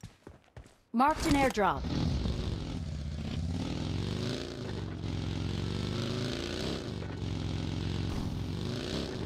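A buggy engine roars and revs as the vehicle drives off.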